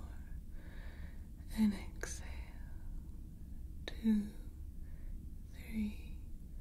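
A young woman whispers softly, very close to a microphone.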